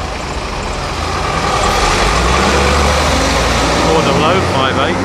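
A bus engine revs as the bus pulls away close by.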